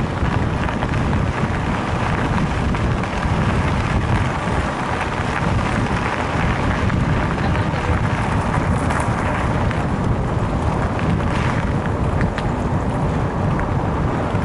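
Wind rumbles over a microphone outdoors.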